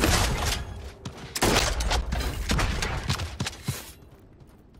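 Gunshots fire in quick, sharp bursts.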